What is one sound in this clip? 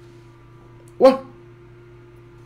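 A man makes a short loud exclamation close to a microphone.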